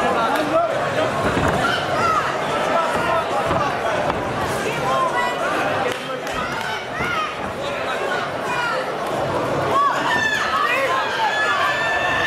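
Gloved punches and kicks thud against a body.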